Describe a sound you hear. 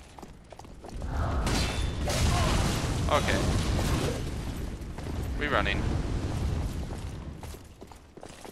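Flames roar and crackle in a loud burst.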